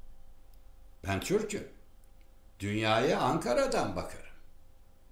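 An older man speaks calmly, close to a microphone.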